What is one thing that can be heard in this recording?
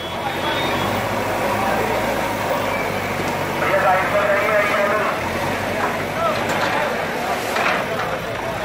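A digger engine rumbles steadily close by.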